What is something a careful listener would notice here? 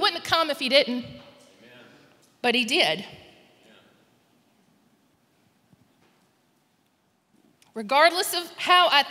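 A woman speaks slowly and emotionally into a microphone, heard through loudspeakers in a large echoing hall.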